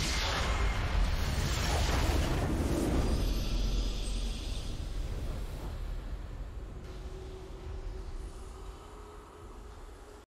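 A game victory fanfare plays triumphantly.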